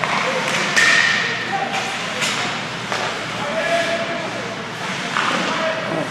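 Skate blades scrape and carve across the ice in an echoing rink.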